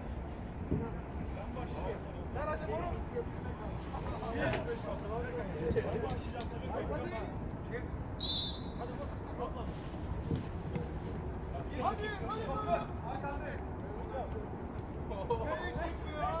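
Young men call out and talk to each other across an open outdoor field.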